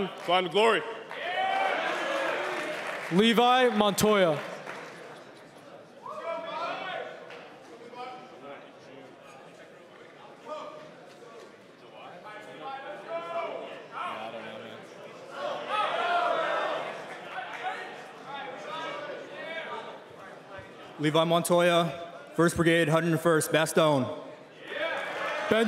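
A man speaks loudly with animation through a microphone in a large echoing hall.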